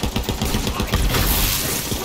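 An electric explosion crackles loudly.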